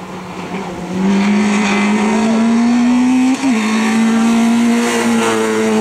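A car engine revs hard and climbs in pitch as it accelerates uphill.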